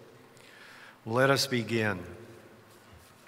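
An elderly man speaks into a microphone in a large echoing hall.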